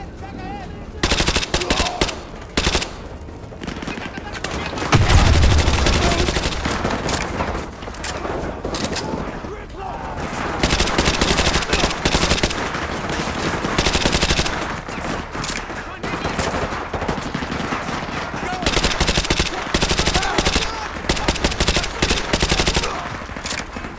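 A rifle fires in bursts.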